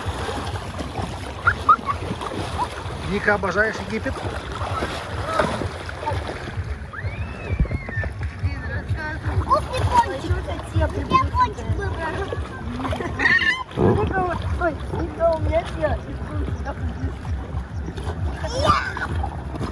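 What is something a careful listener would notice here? Water splashes and laps as children paddle in a pool.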